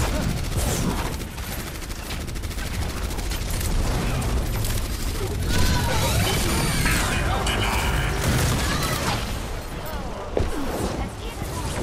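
Rapid gunfire crackles and booms.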